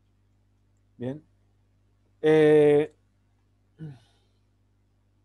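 A man speaks in short bursts through an online call microphone.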